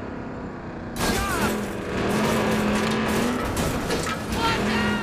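A car crashes and scrapes with loud metallic bangs.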